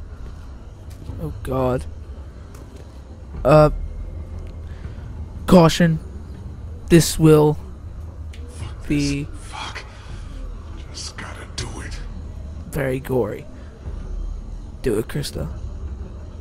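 A man mutters and curses under his breath, tense and strained.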